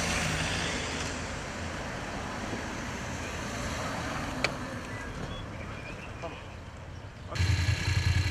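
A car drives slowly past on pavement.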